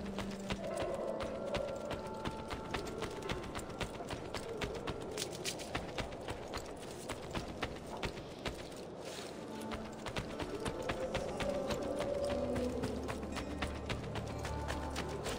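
Quick footsteps run over stone.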